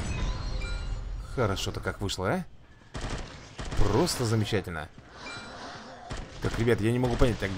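Rifle shots fire in short bursts.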